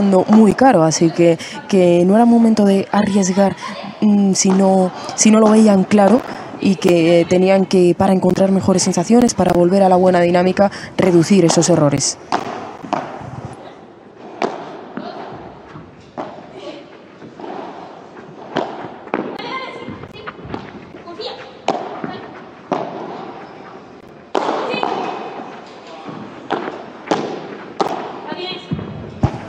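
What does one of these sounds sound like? Padel rackets strike a ball with sharp, hollow pops in a quick rally.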